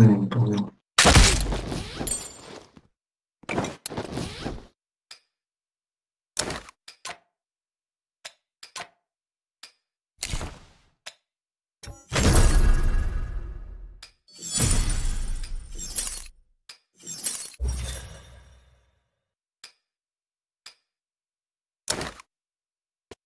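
Short clicks and pickup chimes sound in bursts.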